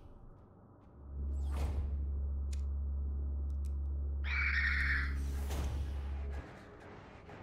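A heavy sliding door rumbles open with a deep hum.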